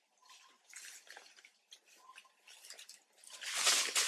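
Water splashes softly in a shallow basin.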